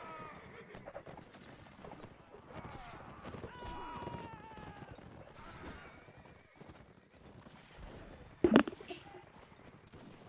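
Horses gallop over sand.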